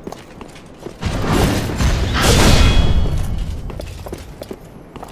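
A loud magical blast whooshes and roars, then fades.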